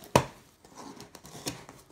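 A knife blade scrapes and slices through cardboard.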